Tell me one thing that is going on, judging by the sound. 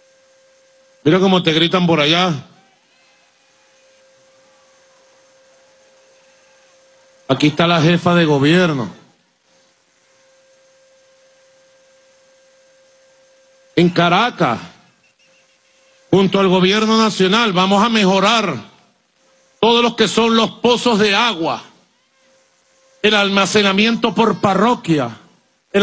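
A man speaks forcefully into a microphone over loudspeakers, in short bursts with pauses.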